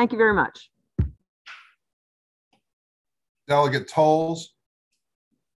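An elderly woman speaks through an online call.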